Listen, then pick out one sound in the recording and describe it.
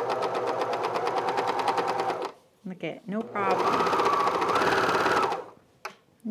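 A sewing machine stitches with a fast, steady whir.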